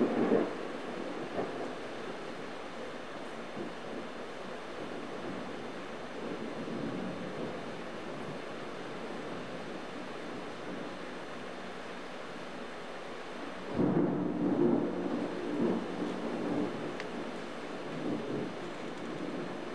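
Rain falls steadily on leaves outdoors.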